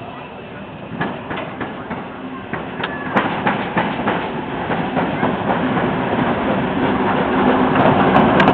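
A steam locomotive chuffs and hisses nearby.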